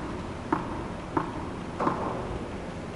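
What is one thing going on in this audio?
A tennis ball bounces on the court before a serve.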